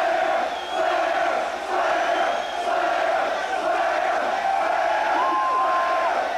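A distorted electric guitar plays loudly through amplifiers, heard from within a crowd.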